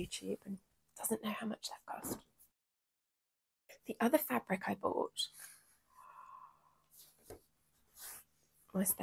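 A woman talks calmly and closely into a microphone.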